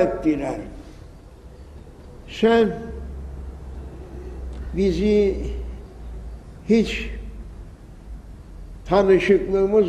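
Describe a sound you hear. An elderly man chants in long melodic phrases through a microphone, echoing in a large hall.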